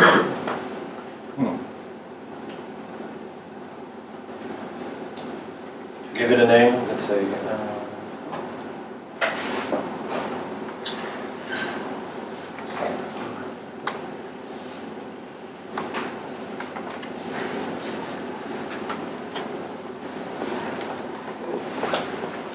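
A man speaks in a large room, heard through a microphone.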